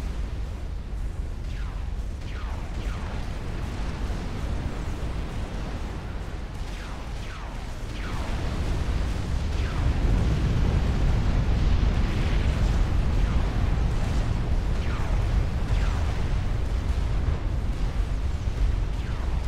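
Deep explosions rumble steadily and grow louder.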